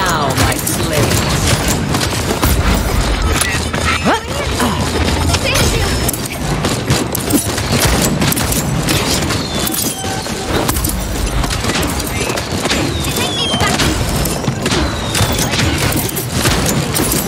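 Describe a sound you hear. Pistol shots fire in rapid bursts.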